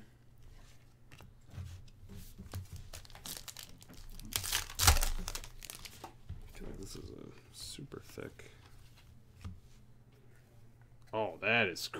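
Trading cards rustle and click as they are shuffled.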